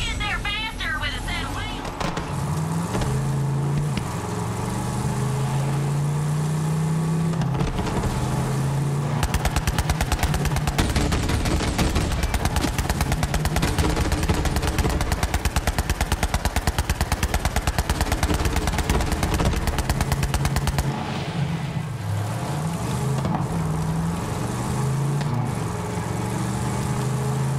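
A buggy's engine hums and revs up and down.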